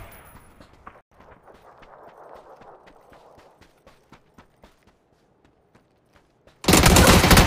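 Footsteps crunch quickly over sand and dirt.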